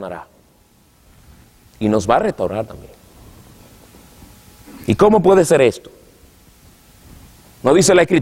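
A man speaks into a microphone in short, emphatic bursts with pauses between them.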